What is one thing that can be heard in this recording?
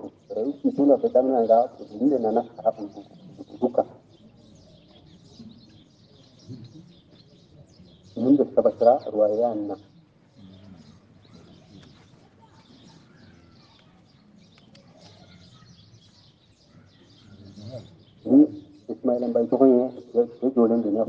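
An elderly man recites in a slow, melodic voice.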